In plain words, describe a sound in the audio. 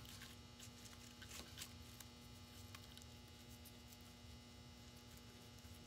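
Ribbon and sprigs rustle softly as hands tie a bow.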